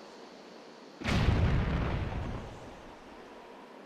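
A bomb explodes with a loud boom.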